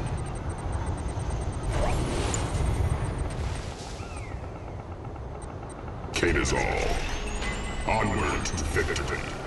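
Rotors of small hovering craft whir and hum steadily.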